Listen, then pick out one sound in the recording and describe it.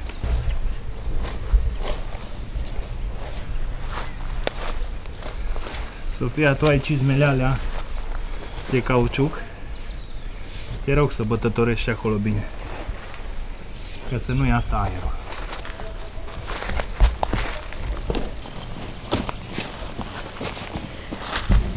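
A shovel scrapes and digs into soil.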